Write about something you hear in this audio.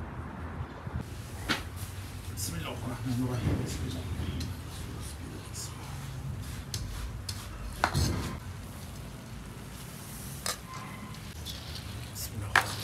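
A metal ladle scrapes and stirs through rice in a large pot.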